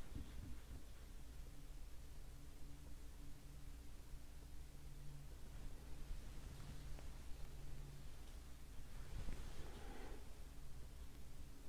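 A paintbrush dabs and strokes softly on canvas.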